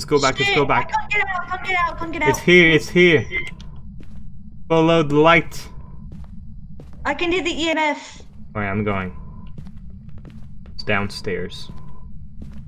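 A young man talks with animation into a close microphone, in bursts.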